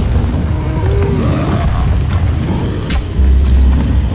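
A bowstring creaks as it is drawn.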